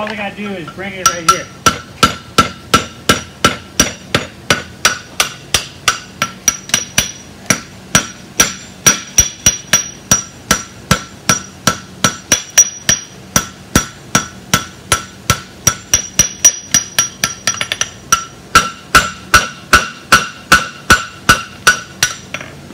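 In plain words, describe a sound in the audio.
A hammer rings rapidly and steadily on hot metal against an anvil.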